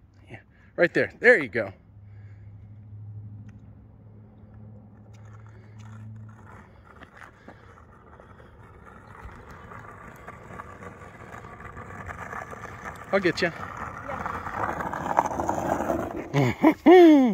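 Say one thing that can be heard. Skateboard wheels roll and rumble on asphalt.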